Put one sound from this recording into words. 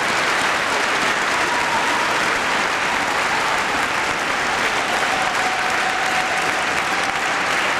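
An audience applauds loudly and steadily in a large hall.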